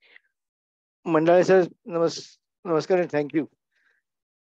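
An older man speaks calmly into a headset microphone, heard over an online call.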